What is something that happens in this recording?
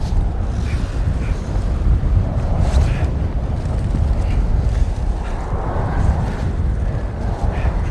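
A man grunts and strains with effort.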